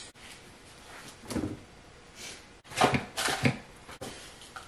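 A coffee maker lid clicks and thumps as it is handled.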